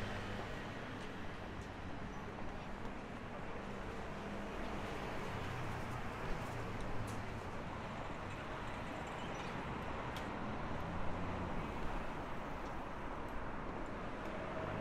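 A busy city street hums with crowd noise and traffic outdoors.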